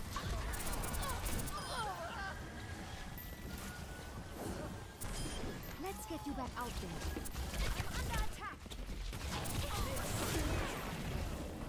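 A game weapon fires rapid bursts.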